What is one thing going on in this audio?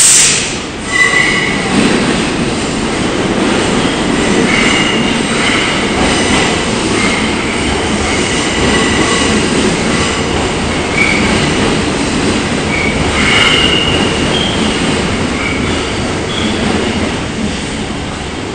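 Steel wheels squeal on the rails as an electric subway train slows.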